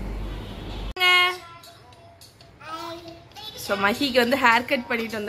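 A young child speaks with animation, close by.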